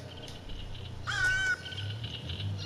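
A crow caws loudly.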